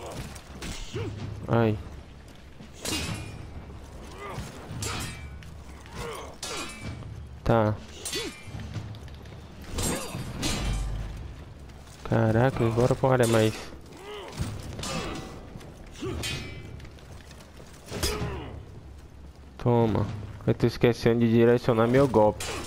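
Steel swords clash and clang with sharp ringing hits.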